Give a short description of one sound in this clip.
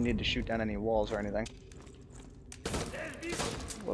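A submachine gun is reloaded with metallic clicks.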